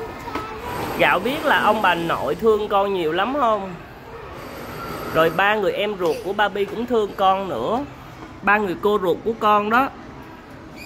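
A young girl talks cheerfully close by.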